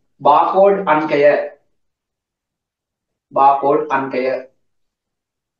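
A man speaks calmly and clearly in short phrases, close to a microphone.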